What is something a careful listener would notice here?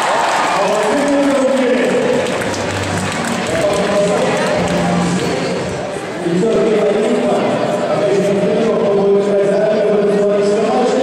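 A large crowd chants and cheers loudly in an echoing arena.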